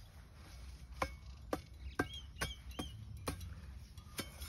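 A metal tool knocks against the ground.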